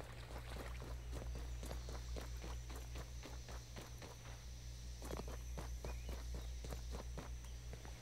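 Quick footsteps patter on soft ground.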